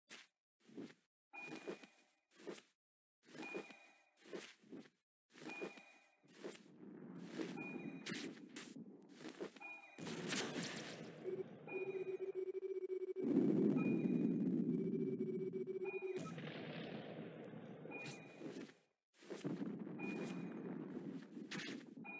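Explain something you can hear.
Wings flap in quick, repeated bursts.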